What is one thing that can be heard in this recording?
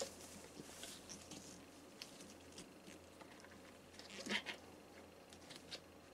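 Rubber of a gas mask rustles and squeaks as it is pulled on.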